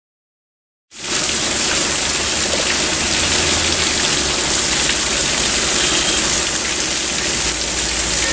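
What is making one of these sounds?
Water trickles and splashes over rock.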